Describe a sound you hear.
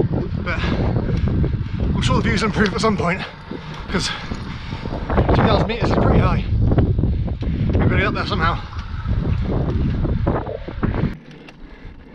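Wind rushes loudly past a microphone.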